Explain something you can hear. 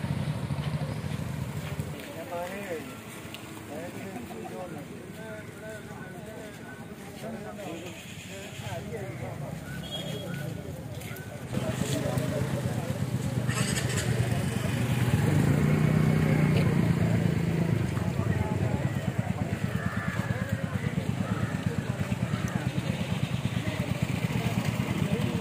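Men talk nearby in a small crowd outdoors.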